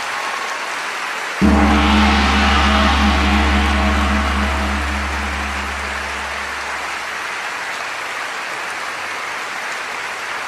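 A crowd in the audience chatters and cheers.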